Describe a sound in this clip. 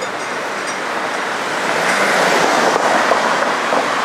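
A van passes close by with a rising and fading engine roar.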